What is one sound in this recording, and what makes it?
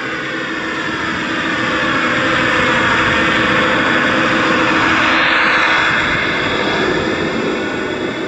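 Snow scrapes and hisses against the front of a toy train.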